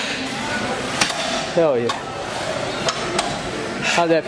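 A leg press machine's weights clank.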